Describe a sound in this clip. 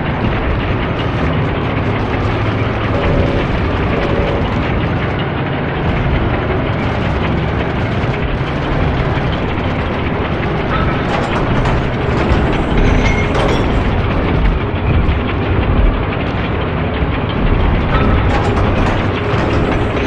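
A tank engine rumbles steadily and deeply.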